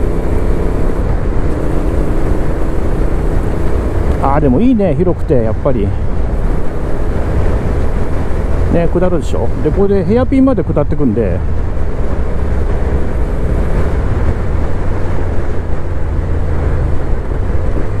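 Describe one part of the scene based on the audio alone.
A motorcycle engine hums and revs up and down.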